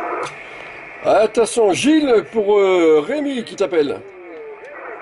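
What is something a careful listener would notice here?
A man speaks with animation into a microphone up close.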